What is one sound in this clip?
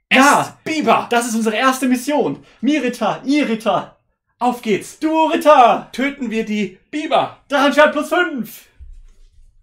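Two young men talk with animation, close by.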